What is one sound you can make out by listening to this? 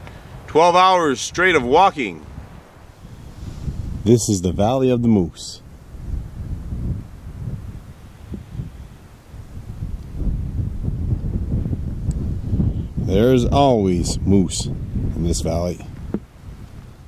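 A middle-aged man speaks calmly close to the microphone.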